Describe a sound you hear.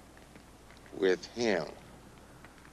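An older man speaks with animation close by.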